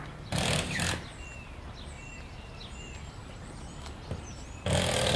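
Small birds chirp and twitter overhead.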